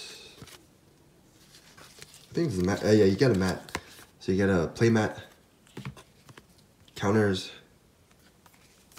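Playing cards rustle and slide against each other in a hand.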